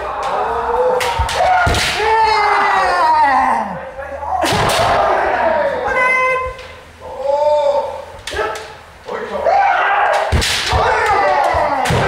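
Masked kendo fencers shout long, sharp battle cries that echo through a large wooden hall.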